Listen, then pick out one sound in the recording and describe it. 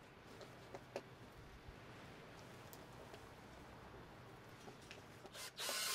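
A screwdriver squeaks as it turns a screw into wood.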